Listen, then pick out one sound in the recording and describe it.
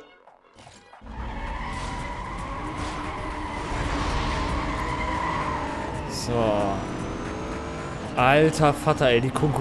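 Racing car engines roar steadily.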